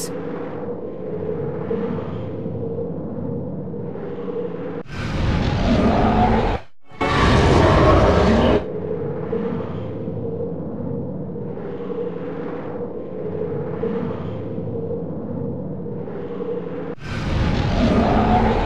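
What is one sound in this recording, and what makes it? Game music plays steadily with swelling rhythmic surges.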